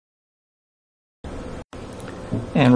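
A small push button clicks once.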